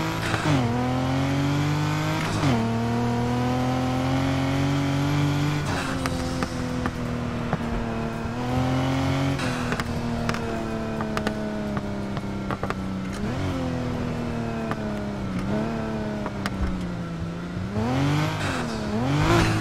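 A sports car engine roars steadily, its pitch dropping and jumping with each gear change.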